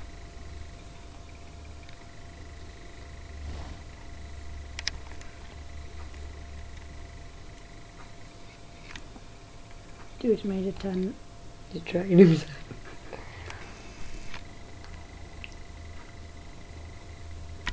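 A guinea pig shuffles and rustles under a towel.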